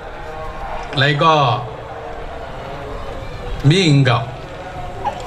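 A middle-aged man speaks slowly and deliberately through a microphone and loudspeakers, outdoors.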